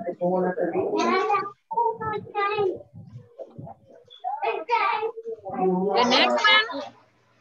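A woman speaks clearly and steadily over an online call.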